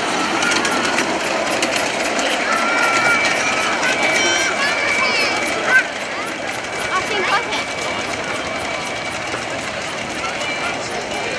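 A miniature ride-on train rolls along narrow rails.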